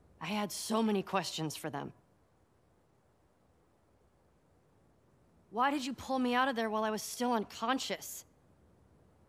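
A young girl speaks questioningly.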